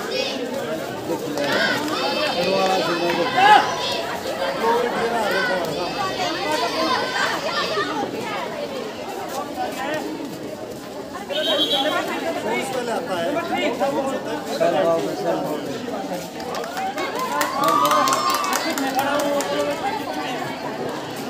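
Children shout excitedly.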